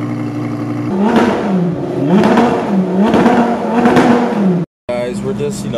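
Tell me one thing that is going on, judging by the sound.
A sports car engine revs loudly several times.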